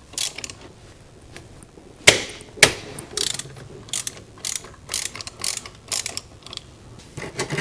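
A ratchet wrench clicks rapidly as a bolt is turned.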